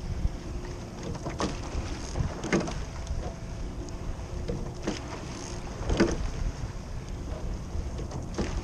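Oars splash and gurgle through water.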